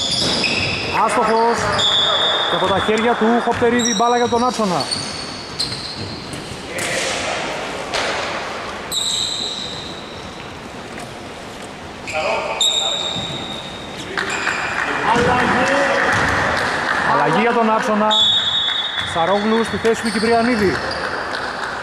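A man calls out loudly across an echoing hall.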